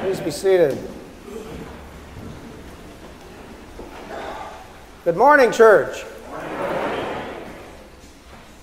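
An elderly man speaks calmly and slowly into a microphone in a large echoing hall.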